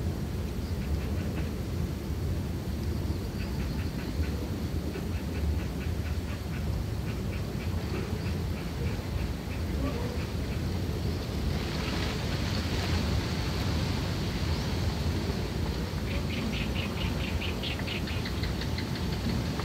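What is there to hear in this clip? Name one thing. Small animals scuffle and rustle through dry bedding.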